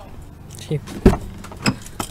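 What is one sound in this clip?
A car door handle clicks.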